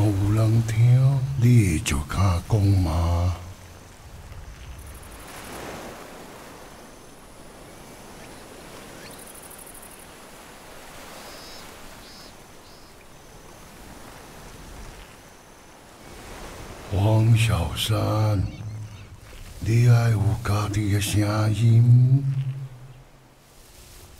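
A deep male voice speaks slowly and gravely, close by.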